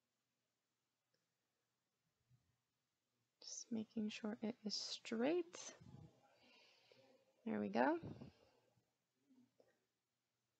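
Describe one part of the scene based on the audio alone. Paper rustles softly under fingers.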